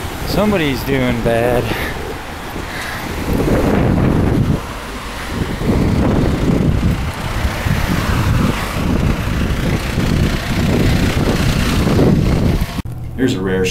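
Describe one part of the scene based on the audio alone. A heavy fire truck engine rumbles as it passes close by.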